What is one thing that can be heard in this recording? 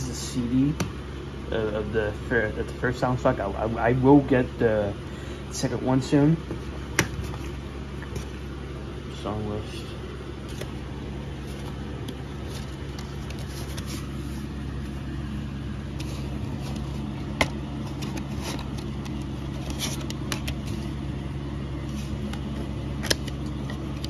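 A plastic disc case clicks and rattles as it is handled.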